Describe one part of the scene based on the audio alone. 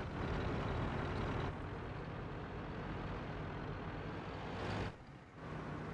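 A tank engine rumbles as the tank drives over rough ground.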